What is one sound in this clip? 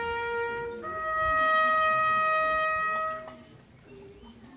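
A group of people sings a long, held note outdoors.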